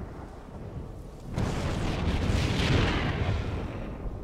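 Wind howls across open ground in a storm.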